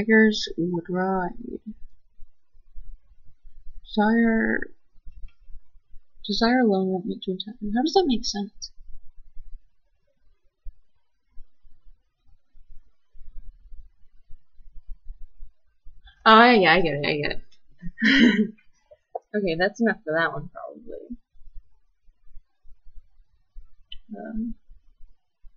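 A young woman speaks softly and close by, reading out in short bursts with pauses.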